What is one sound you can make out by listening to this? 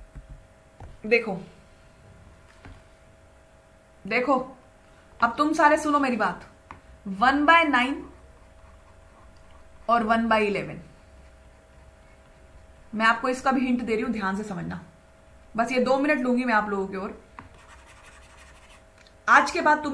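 A young woman speaks with animation into a close microphone, in short bursts with pauses.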